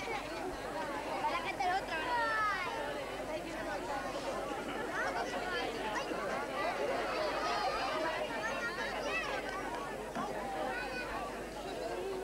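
Many women chatter and talk at once outdoors.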